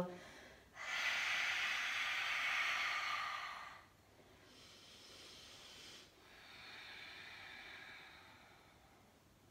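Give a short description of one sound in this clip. A woman breathes out slowly and audibly.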